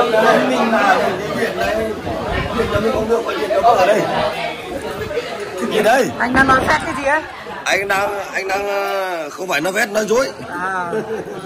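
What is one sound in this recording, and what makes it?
Several men talk and joke loudly close by.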